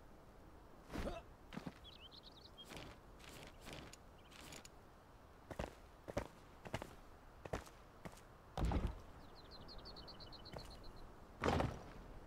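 Stone blocks thud heavily into place, one after another.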